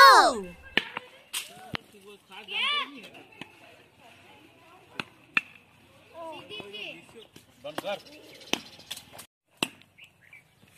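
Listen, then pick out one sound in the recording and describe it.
A cricket bat knocks a ball outdoors.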